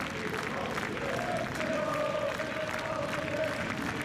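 A crowd murmurs and cheers in a stadium.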